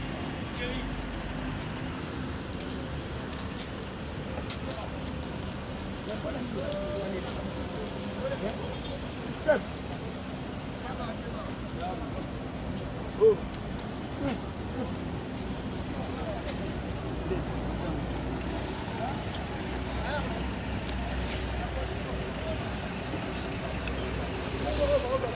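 Men talk and murmur in a crowd outdoors.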